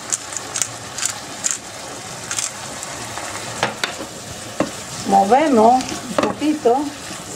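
A wooden spoon scrapes and knocks against a frying pan.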